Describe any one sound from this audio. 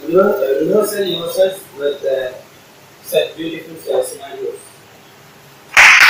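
A boy speaks to a small audience.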